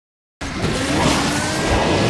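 A car's nitro boost whooshes loudly.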